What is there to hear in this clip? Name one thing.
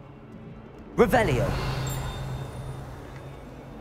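A magic spell crackles and sparkles with a bright whoosh.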